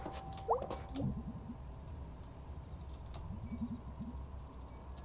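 Short soft electronic blips sound in quick runs.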